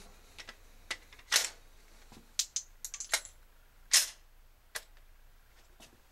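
A pistol's slide and magazine click as a man handles them.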